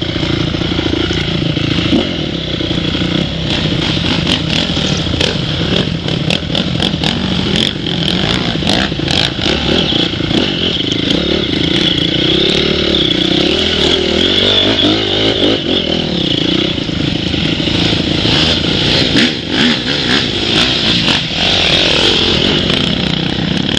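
A dirt bike engine idles and revs close by.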